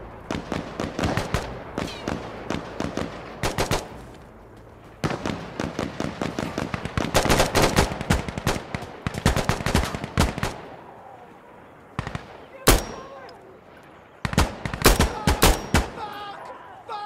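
Rapid rifle shots crack in quick bursts.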